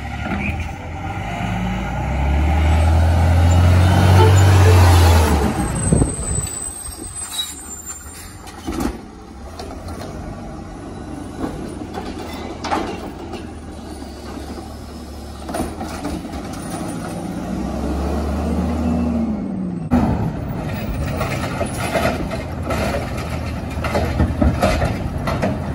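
A garbage truck engine rumbles and roars loudly nearby.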